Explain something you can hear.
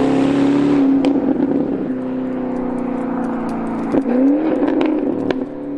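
Exhaust pops and crackles from a sports car.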